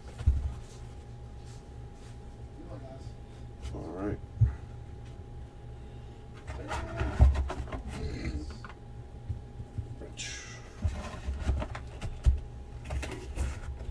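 Cardboard box flaps rustle and flex as hands open and close them.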